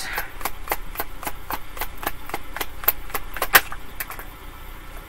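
Cards riffle and click as they are shuffled.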